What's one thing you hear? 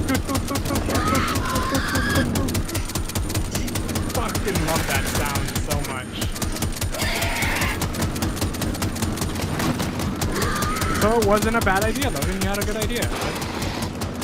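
Creatures shriek and screech loudly.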